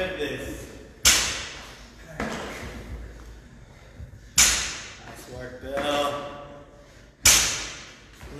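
A loaded barbell drops and slams onto a rubber floor with a reverberating crash.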